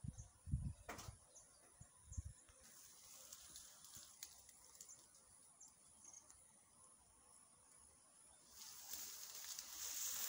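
A swarm of bees buzzes softly nearby.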